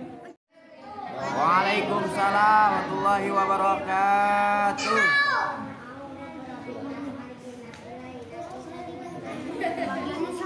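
A young girl chants into a microphone.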